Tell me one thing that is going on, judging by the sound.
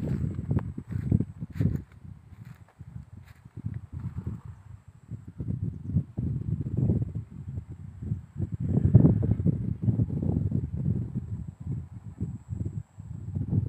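Wind gusts and buffets loudly across open ground.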